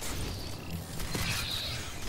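A fiery explosion booms.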